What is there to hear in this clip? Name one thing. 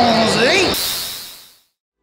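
A loud burst of static hisses.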